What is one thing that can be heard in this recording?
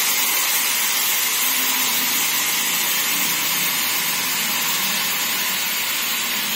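A hydraulic lift hums and hisses steadily as it moves.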